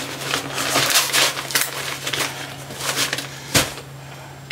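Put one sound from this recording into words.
A fabric bag rustles and crinkles as things are pulled out.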